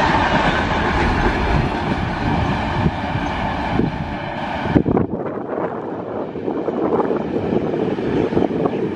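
A long freight train rumbles past, its wheels clattering on the rails.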